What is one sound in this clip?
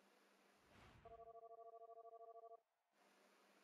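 A game's score counter ticks rapidly with a pulsing electronic beep.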